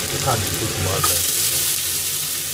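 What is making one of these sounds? Chopped onions drop into a hot pan with a loud burst of sizzling.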